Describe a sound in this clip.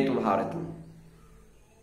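A young man speaks briefly and calmly, close by.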